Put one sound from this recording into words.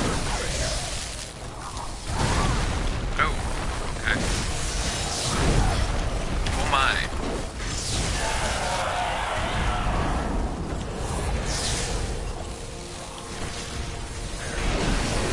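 Magic attacks crackle and whoosh.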